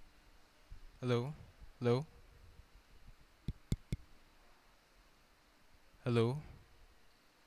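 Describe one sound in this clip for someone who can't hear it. A young man speaks briefly into a microphone, heard through loudspeakers.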